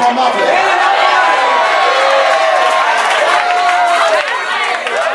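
A crowd sings along and cheers.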